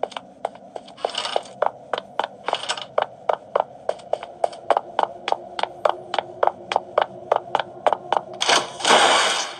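Footsteps patter quickly in an even rhythm.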